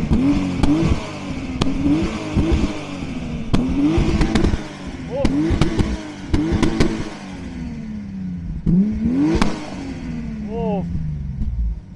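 A car engine revs hard again and again.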